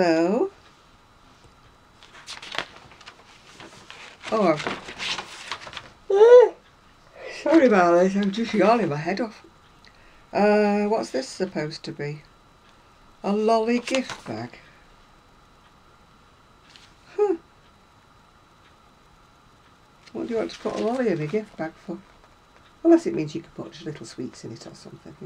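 An elderly woman talks with animation close by, in short bursts.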